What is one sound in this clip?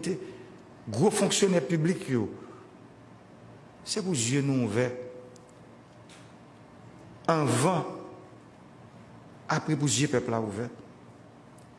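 A man gives a slow, formal speech through a microphone, pausing between phrases.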